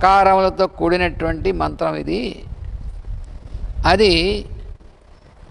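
An elderly man speaks slowly and deliberately into a microphone, in a room with a slight echo.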